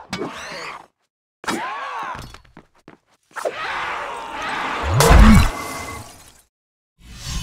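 Magical chimes shimmer as glowing sparks are gathered.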